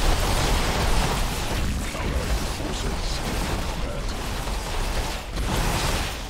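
Energy weapons fire and blast rapidly in a battle.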